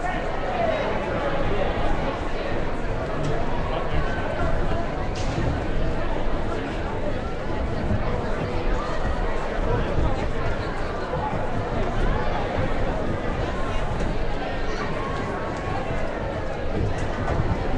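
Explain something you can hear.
A crowd of men, women and children chatters loudly in a large echoing gym.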